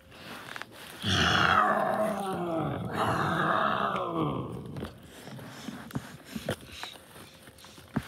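Paper crinkles and rustles as a paper puppet is waved about.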